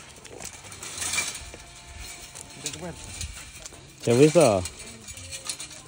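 Pruning shears snip through vine branches.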